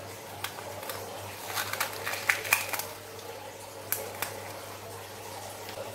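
Soft beads squish and crackle between fingers.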